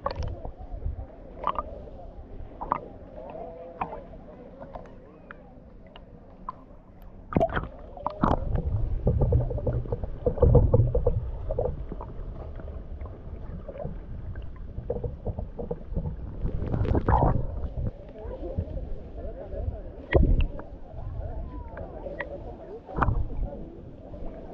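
Water laps and splashes close by.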